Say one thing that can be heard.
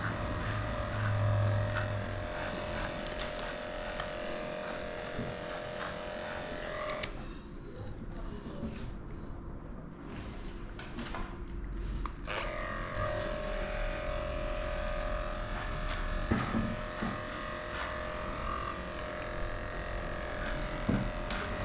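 Electric clippers buzz steadily as they trim a dog's fur.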